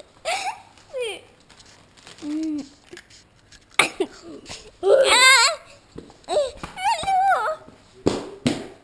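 A young boy speaks and shouts excitedly close by.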